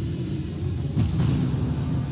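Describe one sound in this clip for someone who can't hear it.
A video game's sound effect bursts with a low rumble.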